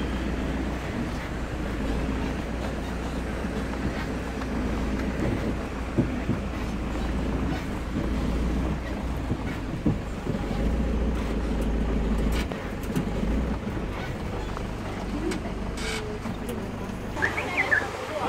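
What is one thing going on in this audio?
A vehicle engine rumbles steadily from inside the cabin.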